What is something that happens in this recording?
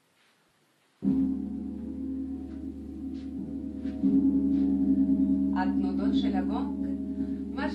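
A large gong is struck softly and hums with a deep, swelling drone.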